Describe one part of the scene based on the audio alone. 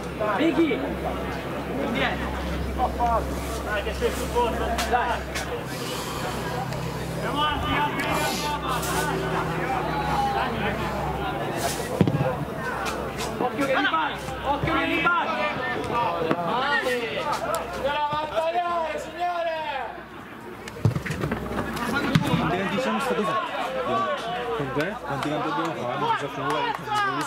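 Boys shout and call out to each other across an open outdoor pitch.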